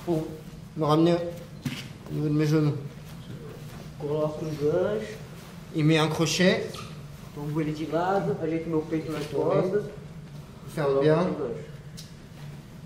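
A man speaks with animation nearby, his voice echoing in a large room.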